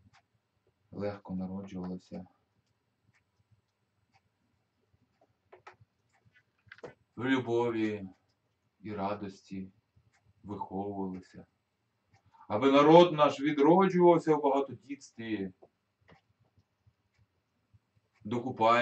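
A middle-aged man speaks calmly in pauses, close to a microphone.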